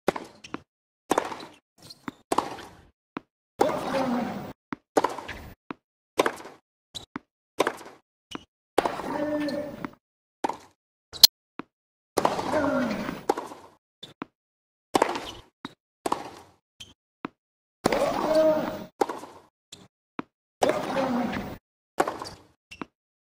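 Rackets strike a tennis ball back and forth in a steady rally.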